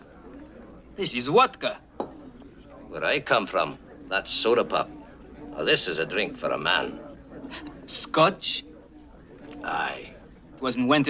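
A middle-aged man speaks calmly with a slight laugh.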